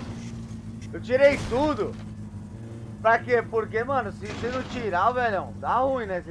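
A man talks loudly and with animation into a headset microphone.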